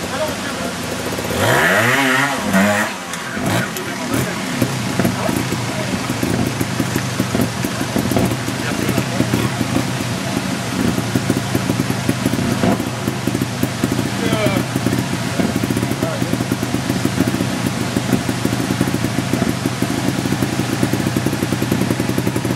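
A motorcycle engine idles and revs in short bursts close by.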